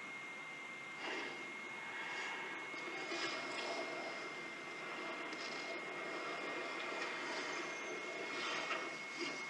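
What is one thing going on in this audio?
Whooshing action sound effects play over a steady rushing noise.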